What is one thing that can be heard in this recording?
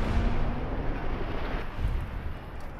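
A fiery explosion roars and crackles.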